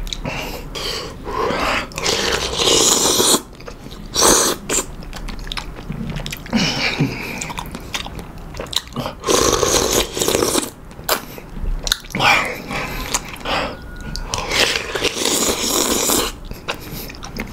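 A man slurps noodles loudly up close.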